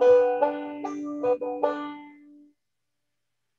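A guitar is strummed over an online call and rings out.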